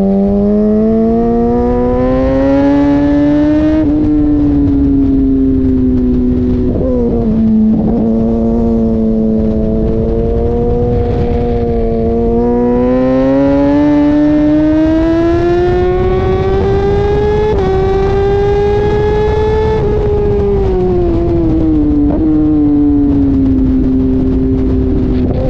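A motorcycle engine roars close by, its pitch rising and falling as it shifts gears.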